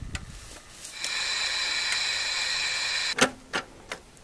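An electronic device hums with a steady high whine.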